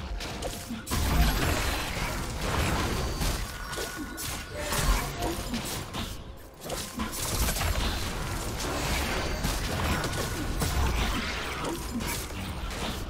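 Game spell effects crackle and boom as fighters clash.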